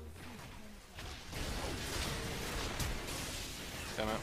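Video game battle effects clash and whoosh.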